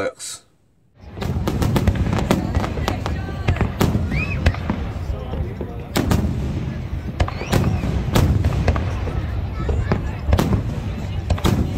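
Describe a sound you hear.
Fireworks bang and crackle outdoors.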